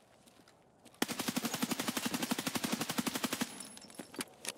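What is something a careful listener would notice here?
A rifle fires a long, rapid burst of shots.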